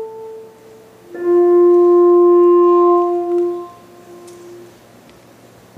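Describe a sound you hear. A saxophone plays a few long held notes that ring out in an echoing hall.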